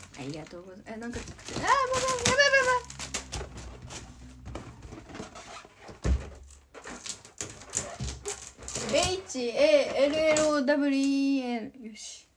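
A rubber balloon squeaks and rubs under a hand.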